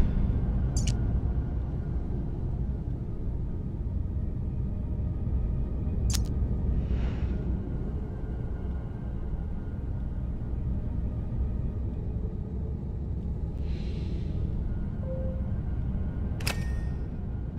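A metal dial clicks sharply into place.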